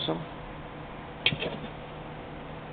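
Hard plastic and metal parts knock lightly as they are handled.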